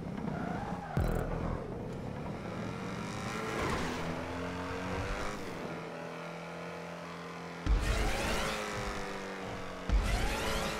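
A sports car engine revs at speed, rising and falling in pitch.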